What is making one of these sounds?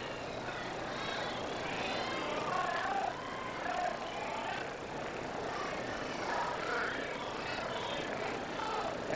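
A large crowd murmurs in an open stadium.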